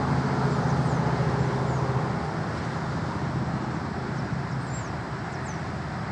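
Wind rumbles steadily outdoors through pine branches.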